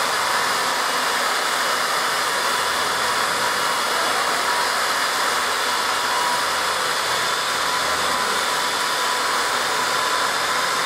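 Dual-head orbital polishers whir against a car's painted hood.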